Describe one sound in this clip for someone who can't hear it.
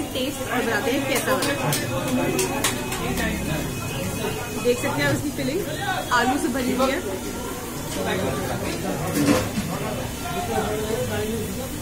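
People chatter in the background of a busy room.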